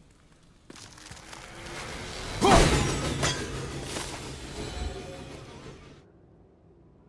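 A magical blast whooshes and crackles loudly, then fades away.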